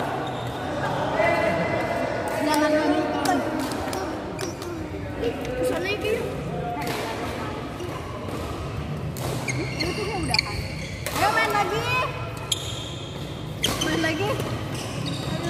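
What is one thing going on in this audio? Young players talk and call out to each other.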